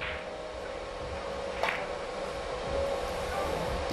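A cue tip strikes a billiard ball.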